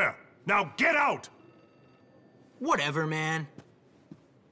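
A man speaks firmly and sternly, close by.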